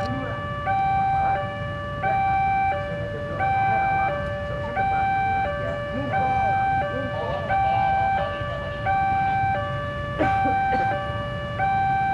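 A railway crossing alarm rings steadily in two alternating tones.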